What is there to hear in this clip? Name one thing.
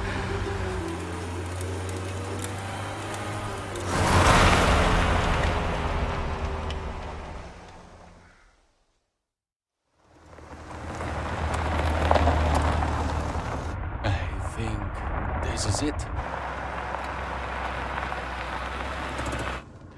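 A car engine rumbles low as a vehicle drives slowly over rough ground.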